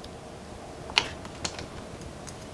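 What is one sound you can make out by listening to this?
Metal tweezers tap lightly against plastic.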